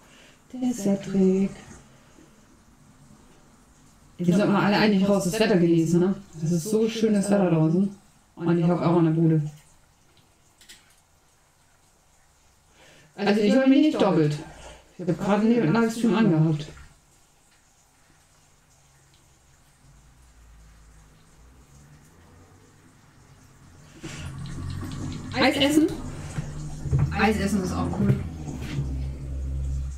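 A young woman talks calmly into a microphone, close by.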